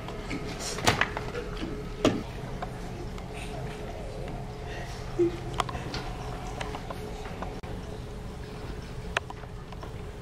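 Sharp knocks and bangs ring out nearby.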